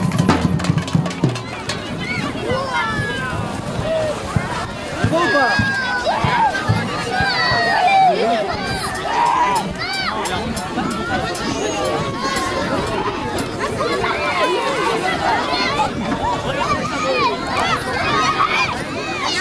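A crowd of children chatters and shouts outdoors.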